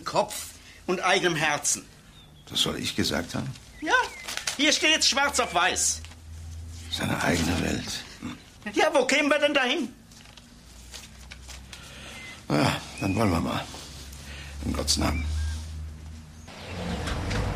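An elderly man speaks in a low, stern voice.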